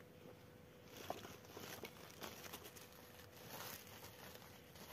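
A plastic sack rustles.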